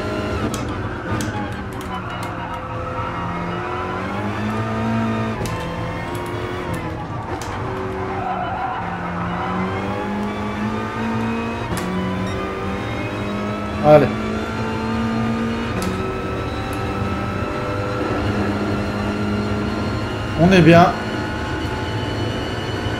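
A racing car engine roars steadily, rising in pitch and dropping sharply with each gear change.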